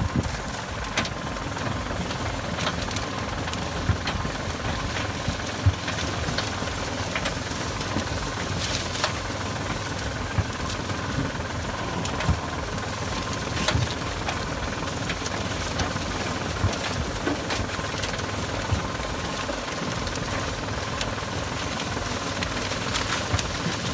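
Dry cornstalks crackle and snap as a tractor pushes through them.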